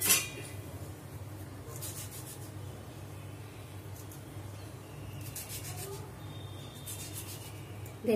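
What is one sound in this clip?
A knife slices softly through a tomato.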